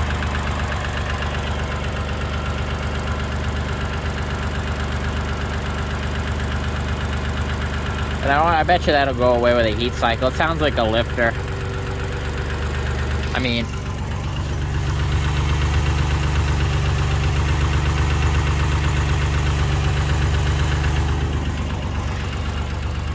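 A car engine idles with a steady, low rumble.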